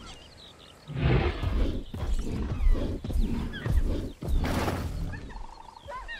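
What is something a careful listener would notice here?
A large dinosaur roars loudly and deeply.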